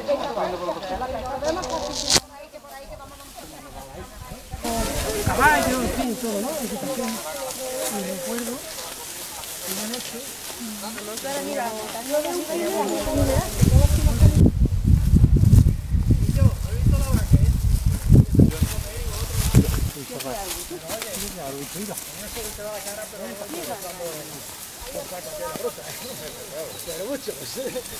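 A group of adult men and women chatter outdoors.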